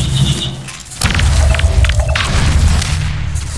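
A shotgun fires loud blasts.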